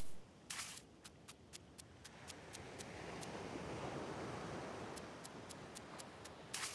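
Quick footsteps patter on sand.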